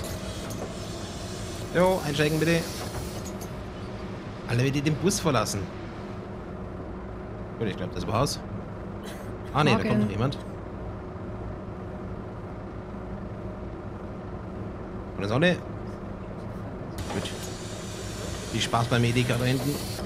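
A bus engine idles with a steady low hum.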